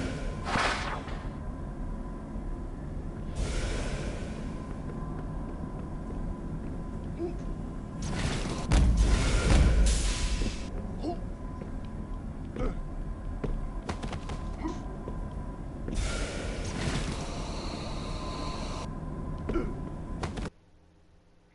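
Short game sound effects of jumps and hits ring out.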